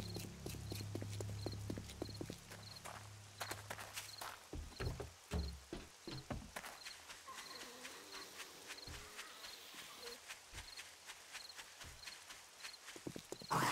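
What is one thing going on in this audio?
Footsteps walk at a steady pace over hard ground.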